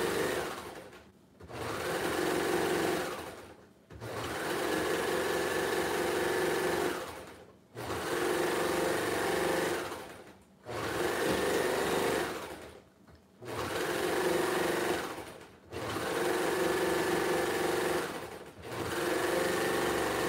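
A sewing machine whirs in short bursts, speeding up and slowing down.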